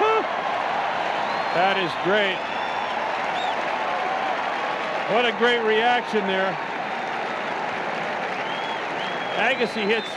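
People in a crowd whistle and shout loudly.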